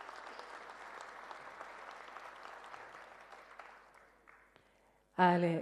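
An audience applauds in a large hall, the clapping fading away.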